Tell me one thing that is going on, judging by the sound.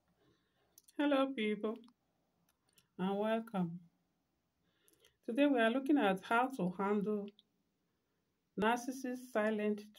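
A woman speaks calmly and close up, in short phrases with pauses.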